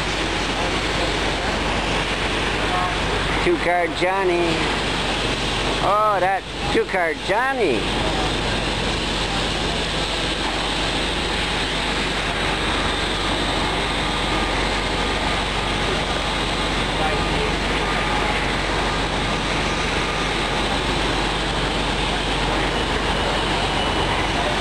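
Traffic rumbles steadily on a nearby street.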